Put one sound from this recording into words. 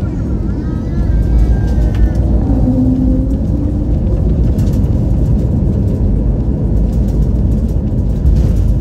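Tyres rumble on the runway as the plane touches down.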